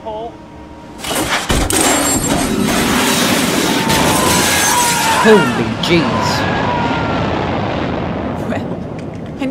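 An ejection seat fires out of a jet cockpit with a sudden loud roar that slowly fades.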